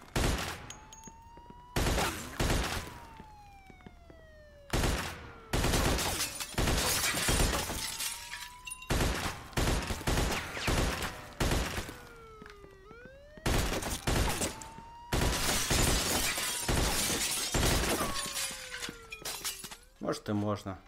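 A submachine gun fires in rapid bursts indoors.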